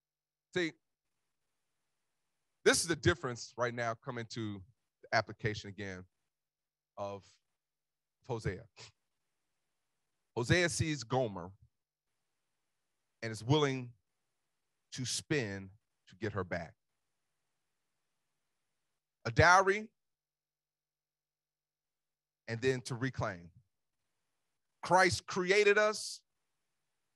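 A man speaks with animation through a microphone, in short phrases with pauses.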